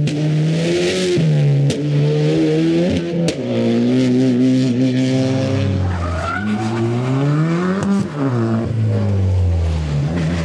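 A rally car engine revs hard, rising and falling in pitch.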